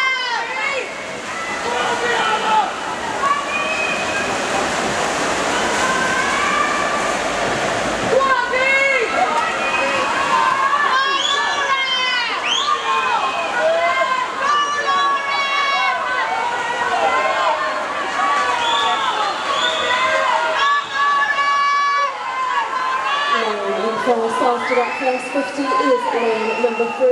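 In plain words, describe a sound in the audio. Swimmers splash through the water.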